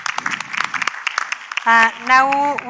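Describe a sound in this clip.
A small audience claps briefly.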